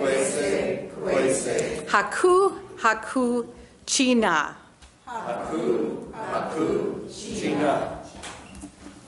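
An elderly woman speaks with animation into a microphone in an echoing room.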